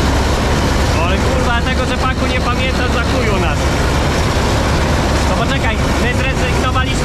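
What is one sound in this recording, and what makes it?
A man talks loudly over the engine noise close by.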